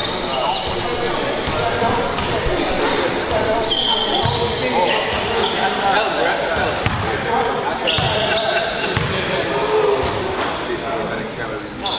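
Sneakers squeak sharply on a wooden court in an echoing gym.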